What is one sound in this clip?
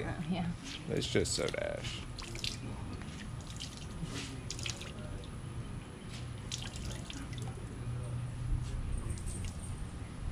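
Water sloshes in a plastic tub as cloth is wrung.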